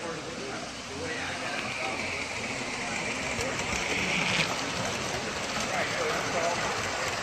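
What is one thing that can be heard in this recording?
A model train rumbles and clatters along its track close by.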